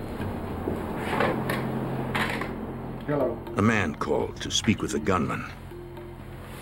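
A second middle-aged man speaks urgently, holding a phone receiver.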